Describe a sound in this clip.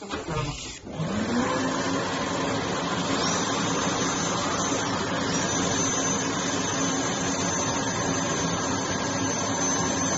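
A dental suction tube hisses and gurgles steadily.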